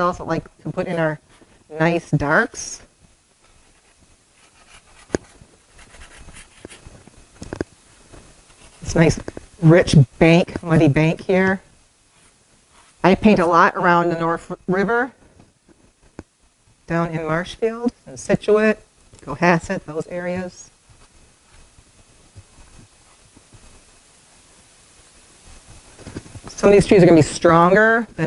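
A woman speaks calmly and close by, in short phrases with pauses.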